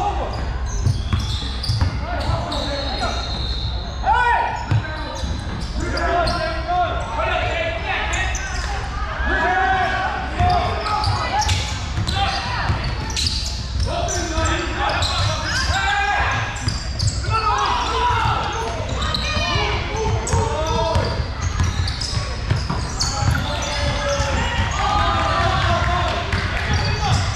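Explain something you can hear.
Young players and spectators call out and chatter throughout.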